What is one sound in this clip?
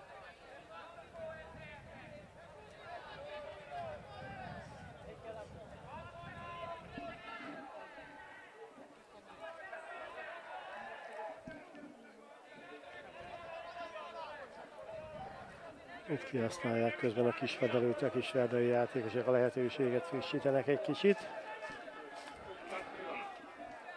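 Men talk to one another outdoors at a distance.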